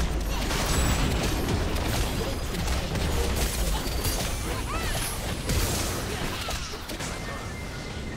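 Game spell effects crackle and clash in a busy battle.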